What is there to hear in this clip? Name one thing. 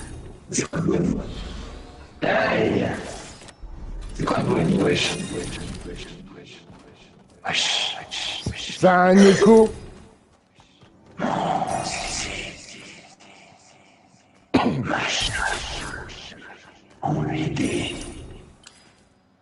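A young man talks with animation into a microphone, close up.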